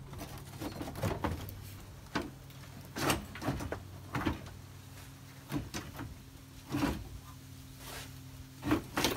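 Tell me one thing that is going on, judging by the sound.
Metal parts clank and knock sharply, close by.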